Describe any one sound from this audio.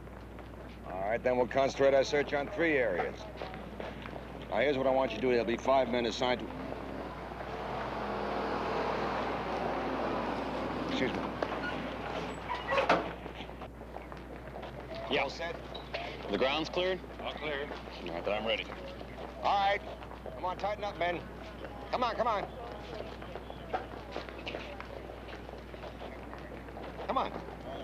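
Adult men talk nearby in serious, steady voices.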